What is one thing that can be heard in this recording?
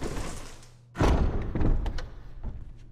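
A heavy door slams shut with a deep boom.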